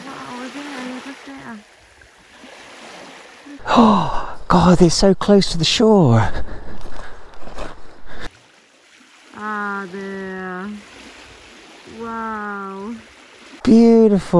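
Small waves lap gently against pebbles.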